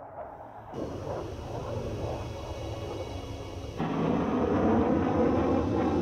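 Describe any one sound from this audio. A jet engine roars steadily and grows louder.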